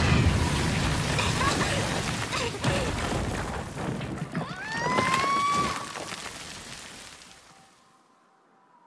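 A loud explosion roars and rumbles, then fades away.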